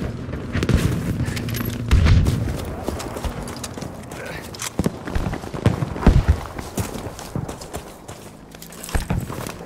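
Footsteps crunch on dirt and sand.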